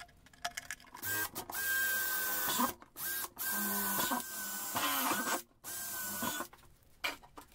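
A cordless drill whirs as it bores through thin plastic.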